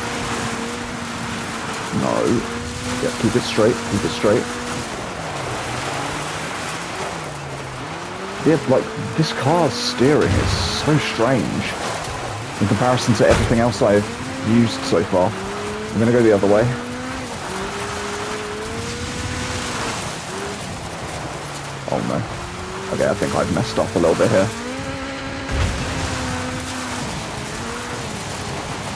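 Tyres crunch and skid over loose dirt.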